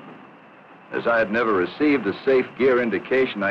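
A man speaks through an oxygen mask microphone.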